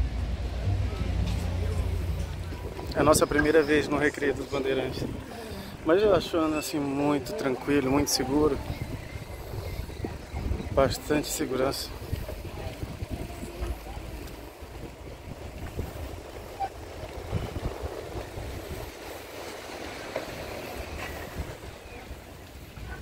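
Bicycle tyres roll steadily over a paved path outdoors.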